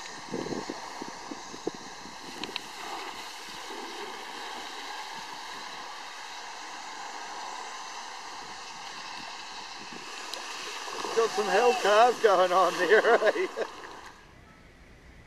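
A wakeboard skims and carves across water with a hissing spray.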